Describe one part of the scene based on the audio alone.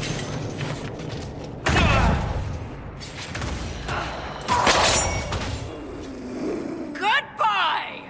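Magic blasts crackle and boom in a fight.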